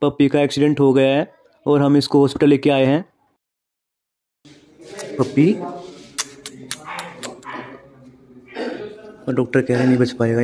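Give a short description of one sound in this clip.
A puppy whimpers and whines close by.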